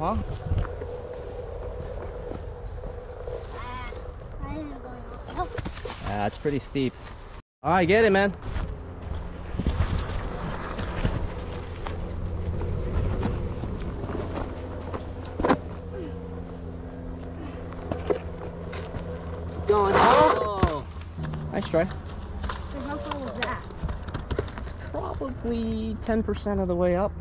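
A tyre crunches over dirt and gravel.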